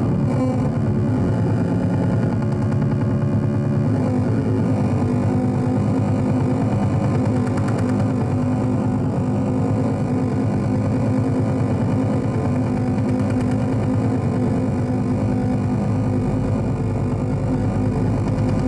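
Loud droning electronic music plays through speakers.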